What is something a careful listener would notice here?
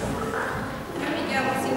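A woman speaks into a microphone in an echoing hall.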